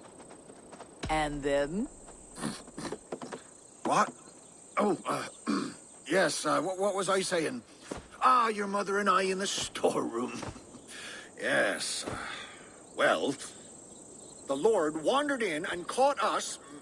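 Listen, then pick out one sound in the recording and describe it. An elderly man talks calmly and with animation, close by.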